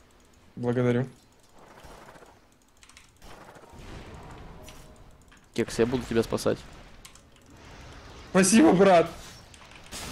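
Magic spells whoosh and crackle amid clashing fighting sounds.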